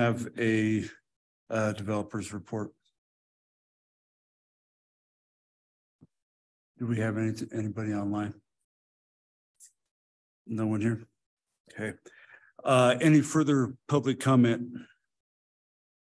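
A man speaks calmly through a microphone in a meeting call.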